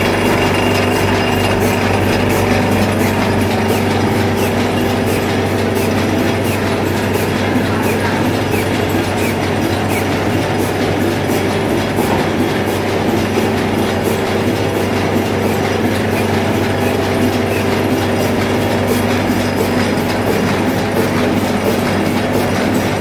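A printing press runs with a fast, rhythmic clatter.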